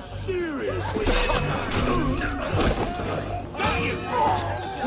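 Men grunt and shout in a scuffle.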